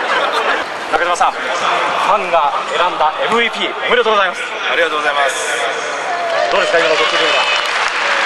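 A young man answers into a microphone.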